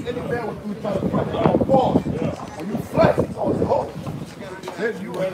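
Men talk with animation nearby, outdoors.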